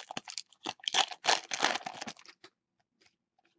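Foil wrappers crinkle and rustle as they are torn open.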